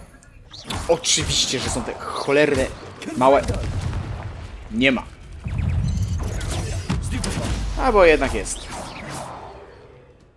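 Magic spells crackle and burst in quick blasts.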